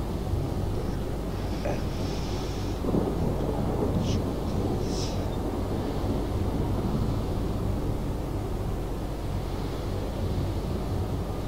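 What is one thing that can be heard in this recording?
Waves wash against a ship's hull.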